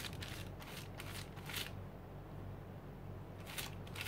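A stiff brush taps and scrapes on paper.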